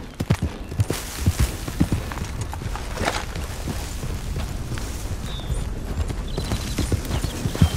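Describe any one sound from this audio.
Bushes and branches rustle and brush past.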